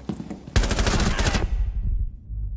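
An automatic rifle fires a rapid burst in a video game.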